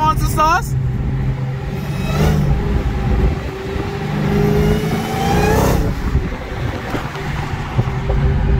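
A car engine hums and rumbles steadily as the car accelerates.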